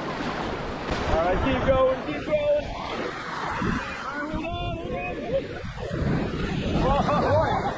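Several young people close by shout and whoop with excitement.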